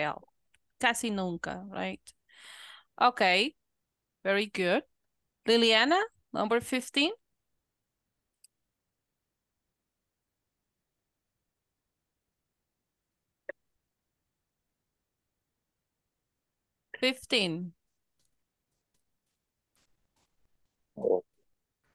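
An adult speaks calmly over an online call.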